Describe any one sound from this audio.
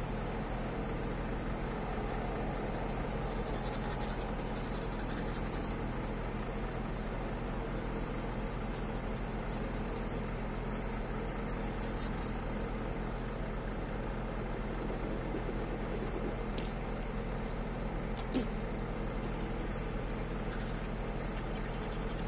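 A toothbrush scrubs teeth close by.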